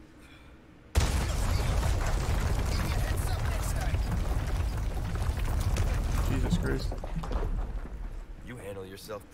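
A loud explosion bursts and rumbles on.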